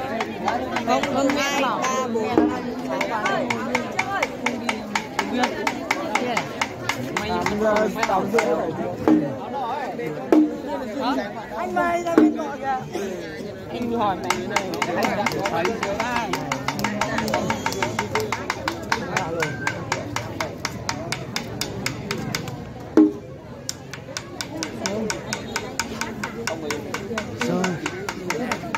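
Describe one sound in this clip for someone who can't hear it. A drum beats in a fast, steady rhythm.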